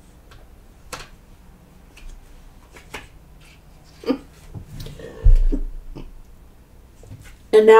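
Cards shuffle and tap softly.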